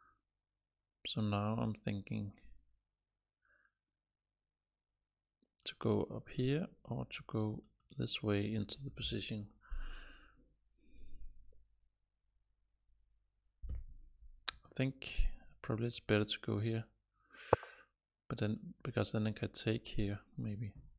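A man talks calmly and thoughtfully into a close microphone, with pauses.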